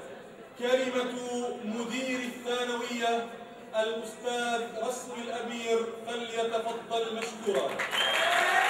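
A man chants in a melodic voice through a microphone.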